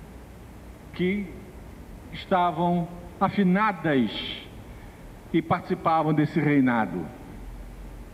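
An older man speaks animatedly through a microphone in an echoing room.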